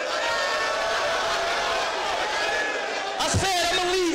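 A crowd of men cheers and shouts.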